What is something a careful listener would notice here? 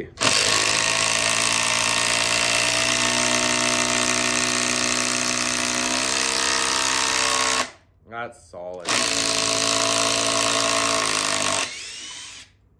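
A cordless drill whines steadily as it drives screws into wood.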